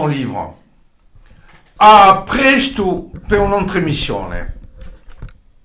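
An elderly man speaks slowly and with feeling, close by.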